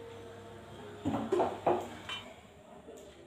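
Wooden bars are tapped with a soft knock.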